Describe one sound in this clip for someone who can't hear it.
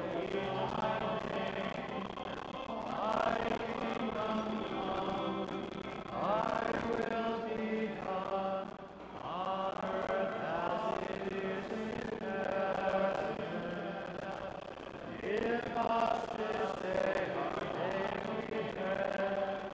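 A congregation of men and women sings together in a large, echoing hall.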